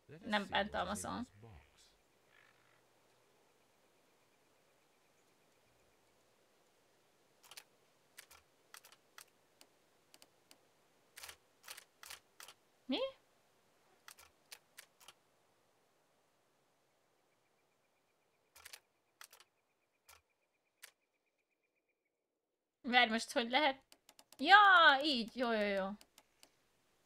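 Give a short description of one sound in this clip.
A young woman speaks into a microphone with animation.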